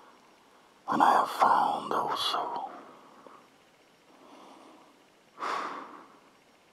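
A man speaks in a low, raspy voice close up.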